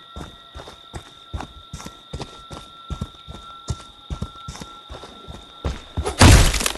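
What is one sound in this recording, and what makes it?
Heavy footsteps crunch steadily on dirt.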